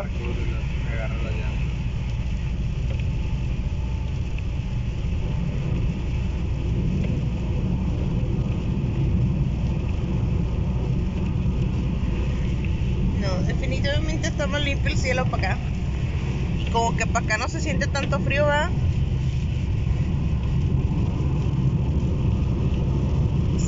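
A car drives on a wet road with a low, steady rumble.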